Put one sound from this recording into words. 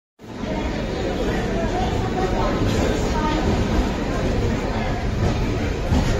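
A passenger train rolls slowly along a platform with a steady rumble.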